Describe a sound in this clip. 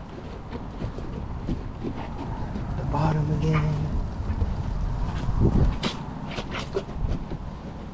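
A microfiber wash mitt scrubs a soapy tyre.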